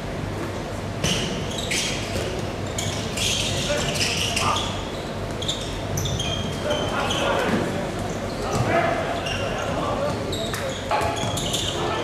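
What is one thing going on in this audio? A ball bounces and thuds on the court floor.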